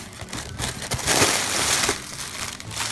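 Plastic air pillows rustle and crinkle.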